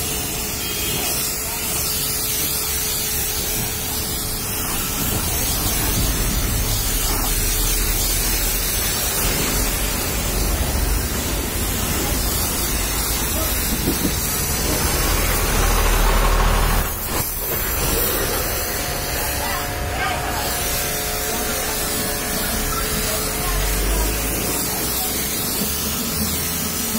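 A pressure washer sprays water hard against metal and a tyre.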